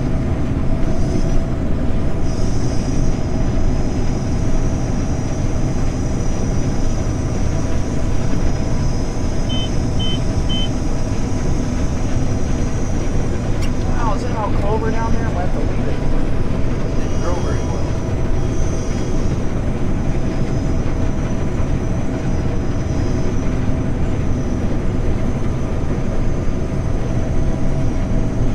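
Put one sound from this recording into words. Crop rustles and crackles as the harvester cuts through it.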